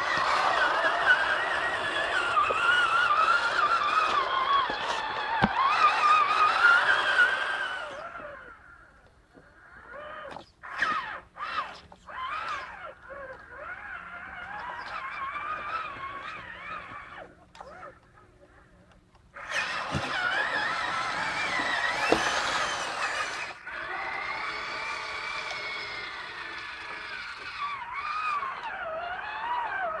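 A small electric motor whines, rising and falling in pitch as a toy truck drives.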